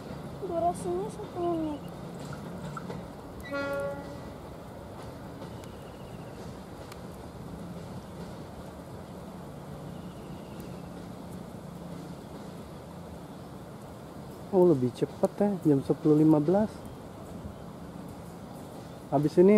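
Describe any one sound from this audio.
A train rumbles slowly along the tracks, moving away.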